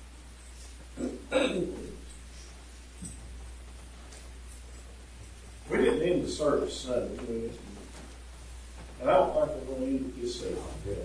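A man speaks in short phrases through a loudspeaker in an echoing hall.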